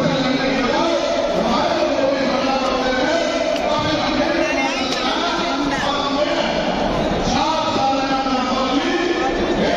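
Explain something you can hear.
A large crowd chants and shouts together in a big echoing hall.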